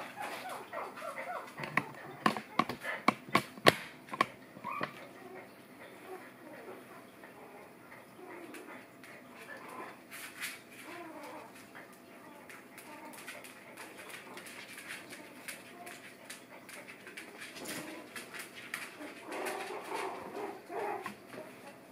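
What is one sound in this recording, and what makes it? Puppies whimper and yip softly close by.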